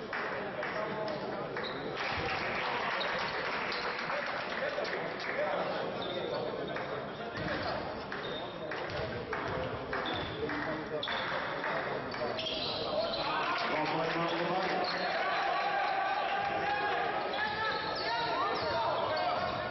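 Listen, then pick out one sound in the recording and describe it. A crowd in a large echoing gym chatters and cheers.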